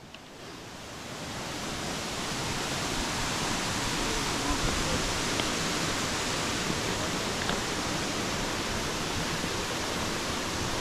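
A stream flows and rushes.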